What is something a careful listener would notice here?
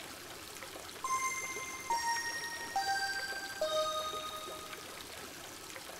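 A soft chime plays in falling steps.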